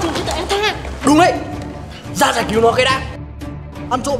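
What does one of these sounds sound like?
A young woman speaks with animation.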